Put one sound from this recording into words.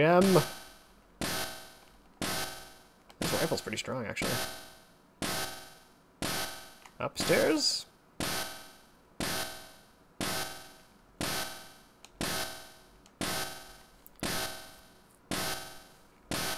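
A game's countdown timer beeps sharply once every second.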